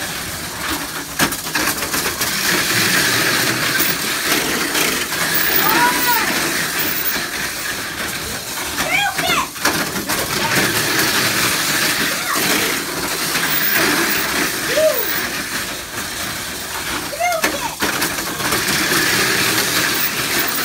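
Small electric toy cars whir steadily around a track.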